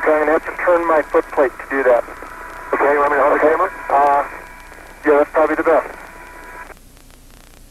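A man speaks calmly over a crackly radio link.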